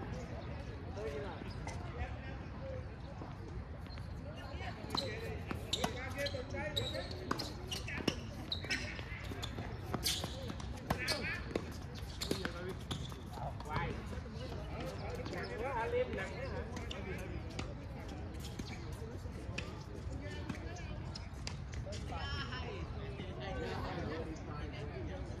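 Adults chat in the distance outdoors.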